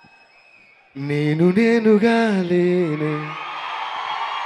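A young man sings loudly into a microphone through loudspeakers.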